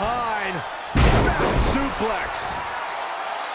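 A body slams onto a wrestling ring mat with a heavy thud.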